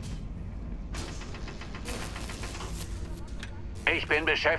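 A cutting laser hisses against rock.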